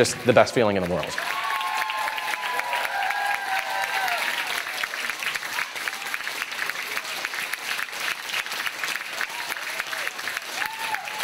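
An audience applauds and cheers in a large room.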